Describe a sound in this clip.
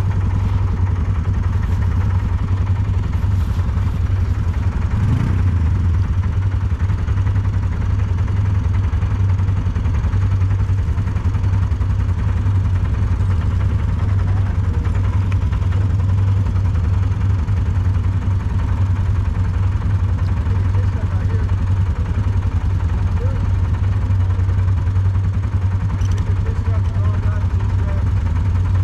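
A quad bike engine idles with a low, steady rumble close by.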